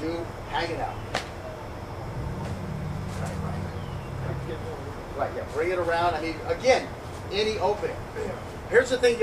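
Young men talk and laugh loudly outdoors.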